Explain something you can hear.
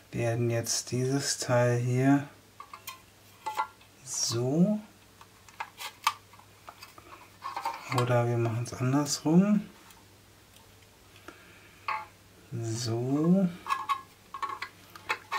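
Plastic parts click and knock as they are fitted together.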